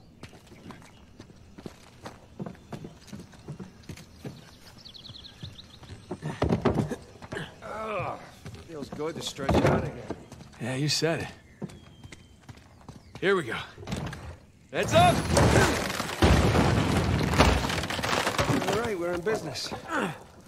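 Footsteps crunch on ground and wooden boards.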